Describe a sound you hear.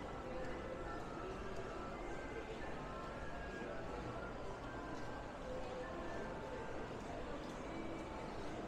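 A crowd murmurs softly in a large echoing arcade.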